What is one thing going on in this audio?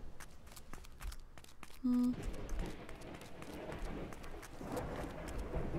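Footsteps patter over grass.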